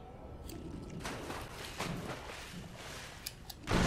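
Heavy thumps of landing jumps hit the ground.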